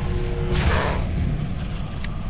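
An energy weapon fires with a sharp crackling zap.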